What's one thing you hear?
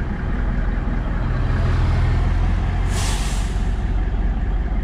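An oncoming truck roars past close by.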